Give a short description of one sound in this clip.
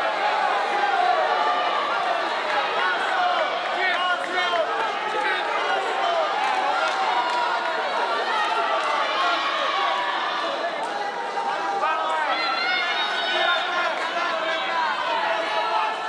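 A large crowd cheers and shouts throughout in a big echoing hall.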